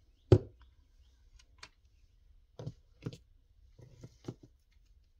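Paper rustles and taps softly on a table.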